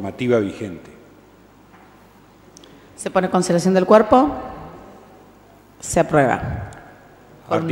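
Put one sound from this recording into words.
A woman speaks through a microphone in a large room with a slight echo.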